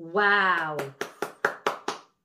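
A woman claps her hands several times.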